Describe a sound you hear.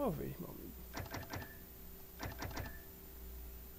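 Short menu clicks tick in quick succession.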